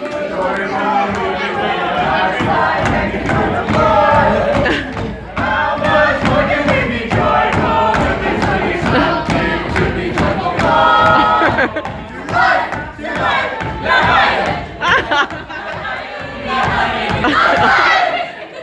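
Feet stamp rhythmically on a wooden stage as a group dances.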